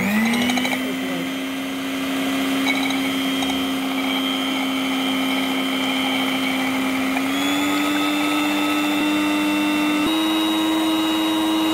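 Mixer beaters churn and swish through liquid.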